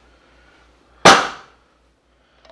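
A metal pan clanks down onto a stovetop.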